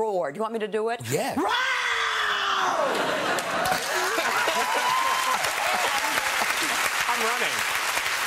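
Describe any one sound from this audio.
A studio audience laughs and applauds loudly.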